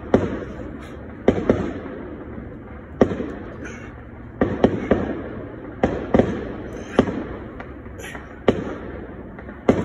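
A man breathes hard with each push-up.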